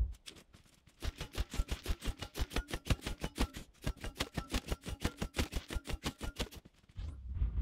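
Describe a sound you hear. A tool strikes a wooden log in rapid, even blows.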